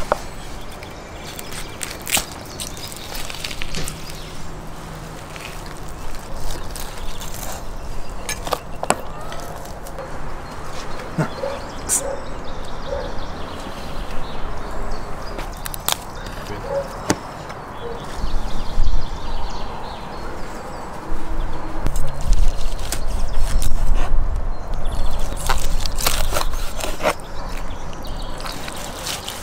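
A knife scrapes and taps against a wooden board while cutting meat.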